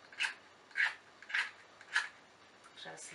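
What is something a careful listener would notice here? A small box rattles as it is shaken in short bursts.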